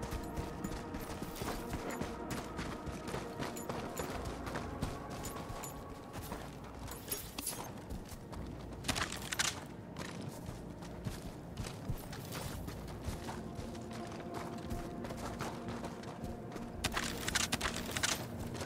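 Footsteps crunch over gravel and rubble.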